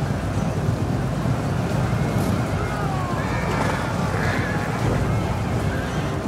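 Many horses' hooves thunder across the ground.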